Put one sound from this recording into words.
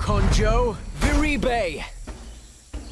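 A magic spell bursts with a bright shimmering chime.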